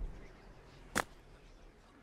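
A golf ball is struck with a sharp click.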